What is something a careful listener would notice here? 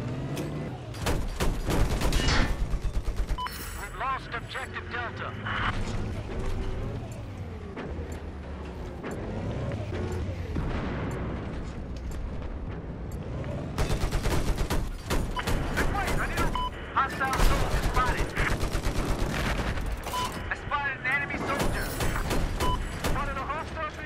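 A cannon fires rapid bursts of loud shots.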